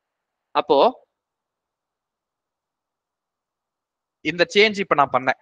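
A man speaks calmly into a close microphone, with short pauses.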